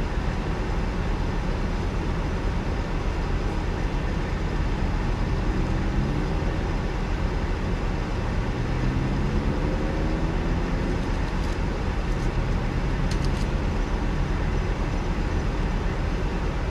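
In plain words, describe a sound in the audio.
Objects rattle and clatter as a woman rummages through a dumpster.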